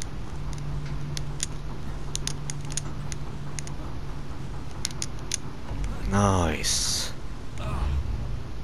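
Hands grip and knock against wood and metal while climbing.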